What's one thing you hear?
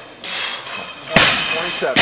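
A loaded barbell crashes onto the floor.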